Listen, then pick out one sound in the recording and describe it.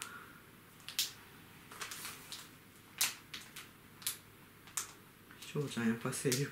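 Plastic packaging crinkles and clicks as it is handled close up.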